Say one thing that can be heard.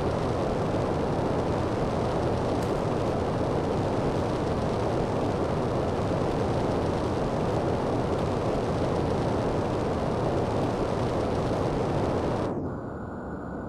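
A jetpack roars with a steady, rushing hiss.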